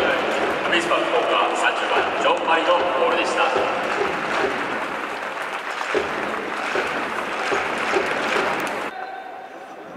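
A large stadium crowd chants and cheers loudly in the open air.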